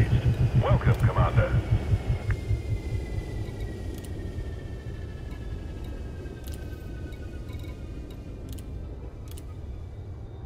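Short soft electronic clicks sound now and then.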